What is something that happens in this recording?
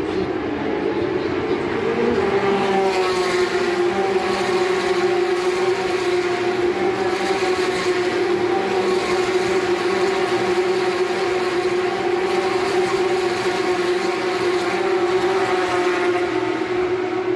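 Racing car engines roar loudly as cars speed past on a track.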